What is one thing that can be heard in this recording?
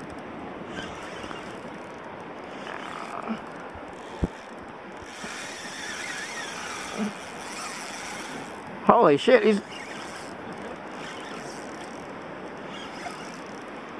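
A fishing reel is wound in.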